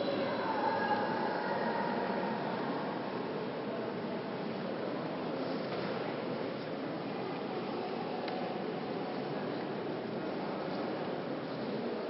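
Men and women murmur quietly in a large echoing hall.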